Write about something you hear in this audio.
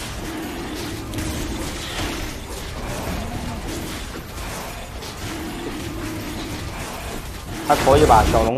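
Game characters clash with magic spells and strikes.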